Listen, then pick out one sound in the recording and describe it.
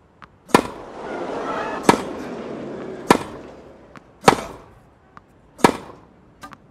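A tennis ball is struck sharply back and forth by rackets.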